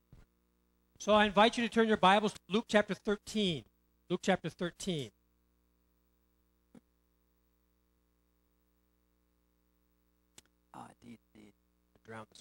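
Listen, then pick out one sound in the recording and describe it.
A middle-aged man speaks calmly in a small, dead-sounding room.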